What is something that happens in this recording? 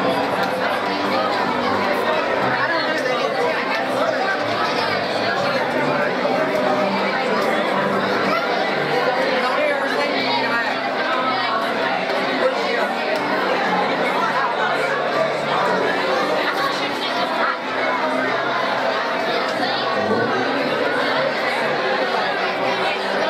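A woman sings through loudspeakers in a large echoing hall.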